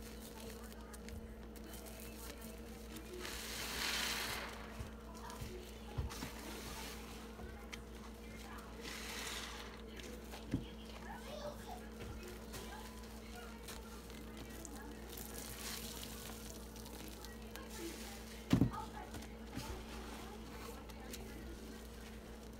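Foamy water sloshes and splashes as a hand stirs it.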